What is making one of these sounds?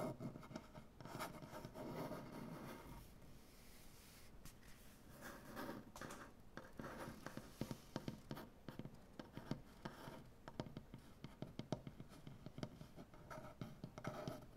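A hand rubs and brushes across wood.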